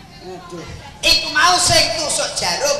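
A young man shouts loudly and excitedly through a microphone.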